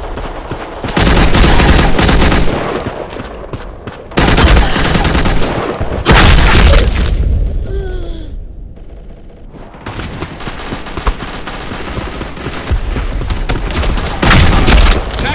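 Rapid gunfire from an automatic rifle bursts loudly and close.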